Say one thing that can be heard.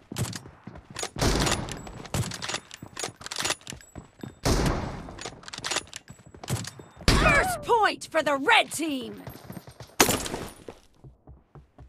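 Rapid bursts of gunfire crack out close by.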